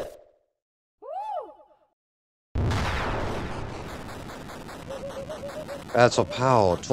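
Bright sweeping chimes rise and fall.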